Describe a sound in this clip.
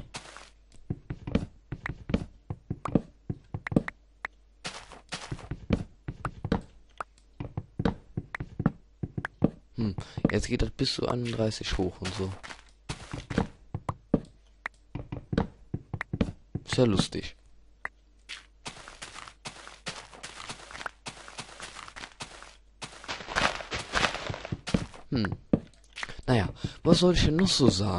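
An axe chops wood with quick, repeated knocks.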